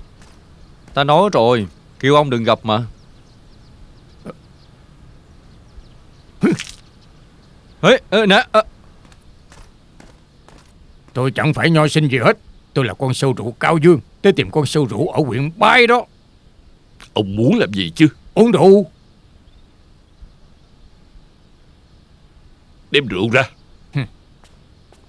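A middle-aged man speaks in a low, weary voice, close by.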